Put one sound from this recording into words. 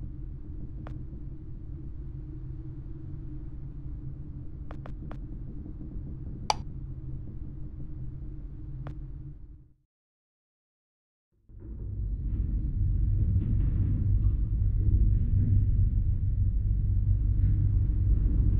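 A low, steady hum drones, then cuts out briefly before returning louder.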